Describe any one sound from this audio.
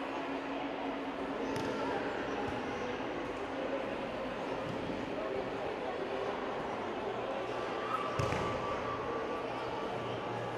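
Bodies thud onto a padded mat in a large echoing hall.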